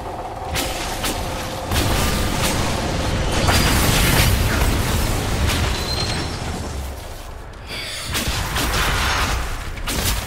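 Magic bolts zap and crackle.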